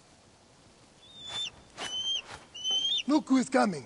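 An eagle screeches overhead.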